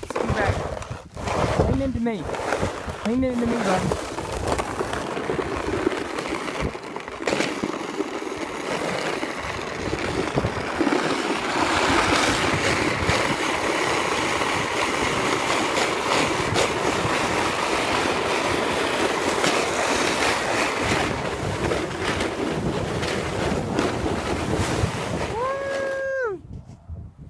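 A sled scrapes and hisses over icy snow.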